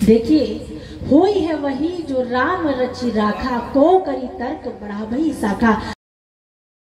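A woman sings a devotional chant into a microphone, heard through loudspeakers.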